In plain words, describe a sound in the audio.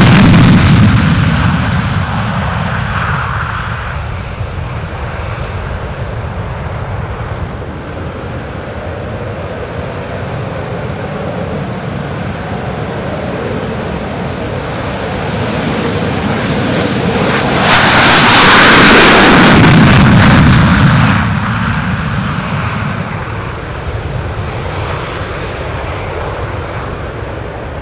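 A jet engine roars loudly as a fighter plane takes off and climbs away.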